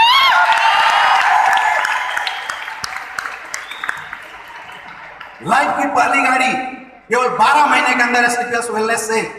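A man sings into a microphone through loudspeakers in a large echoing hall.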